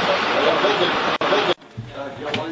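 A cat meows loudly up close.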